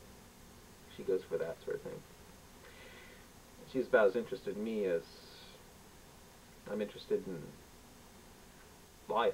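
A man speaks calmly and close by, in short bursts with pauses.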